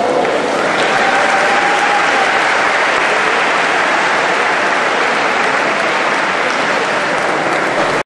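Swimmers splash steadily through water.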